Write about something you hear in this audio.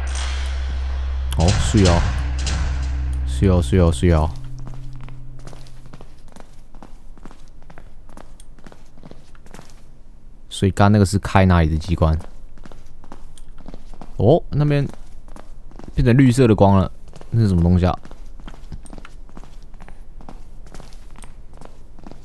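Footsteps tread on a tiled floor.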